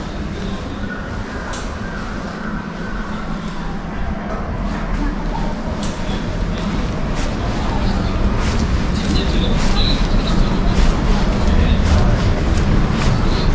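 Outdoor city noise hums steadily in the distance.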